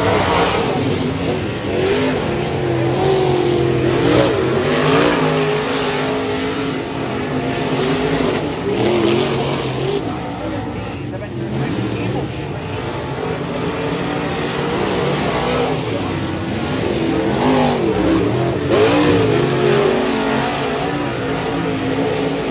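A race car engine roars loudly and revs up and down as it speeds by.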